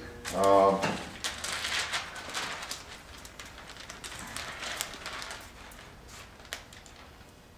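A plastic sheet crinkles as a man handles it.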